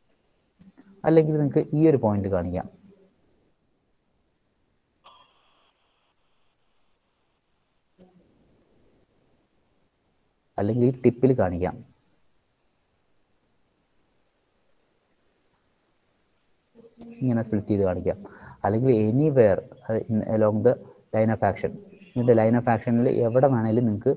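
A young man speaks calmly into a microphone, explaining in short bursts with pauses.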